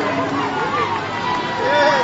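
Players clap their hands in celebration.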